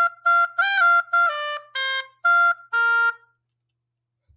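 A girl plays a short tune on an oboe close by.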